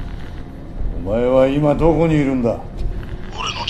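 A middle-aged man asks a question in a low, calm voice.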